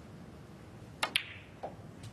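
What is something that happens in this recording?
A cue strikes a snooker ball with a sharp click.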